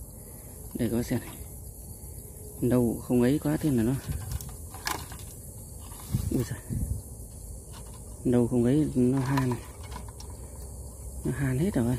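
A wire cage rattles lightly as a hand moves it.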